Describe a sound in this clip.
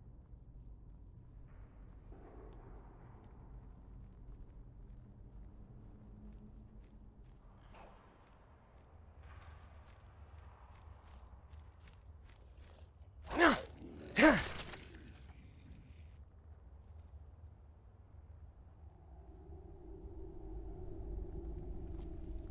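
Footsteps scuff over rocky ground.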